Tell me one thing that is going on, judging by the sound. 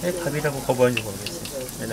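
Oil bubbles and sizzles in a pot.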